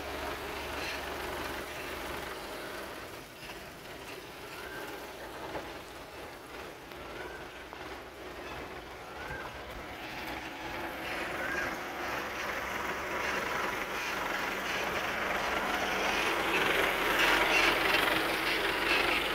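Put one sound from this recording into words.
A forklift engine hums and grows louder as it drives closer.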